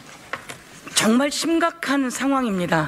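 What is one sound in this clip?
A woman speaks firmly into a microphone, heard through a loudspeaker system.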